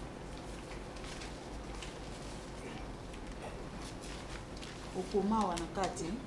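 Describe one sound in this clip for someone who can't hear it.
Paper money rustles as it is handed over.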